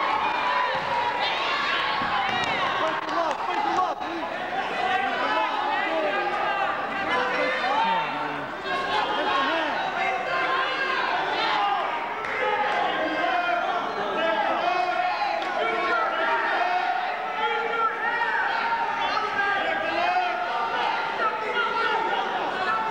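A crowd of spectators shouts and cheers loudly in an echoing gym.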